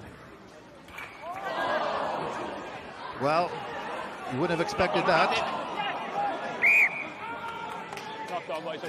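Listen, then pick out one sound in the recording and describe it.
A crowd cheers loudly from the stands, outdoors.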